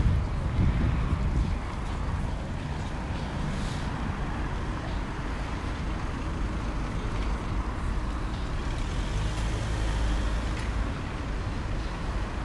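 Cars drive past, engines humming and tyres rolling on the road.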